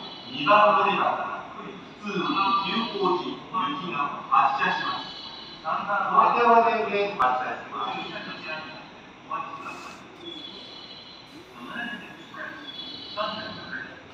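An electric train hums steadily while standing with its doors open.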